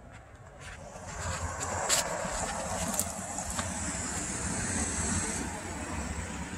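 A car drives past on a nearby street.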